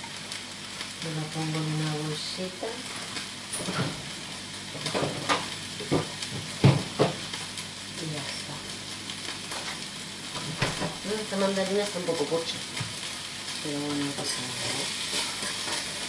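A woman speaks briefly and calmly, close by.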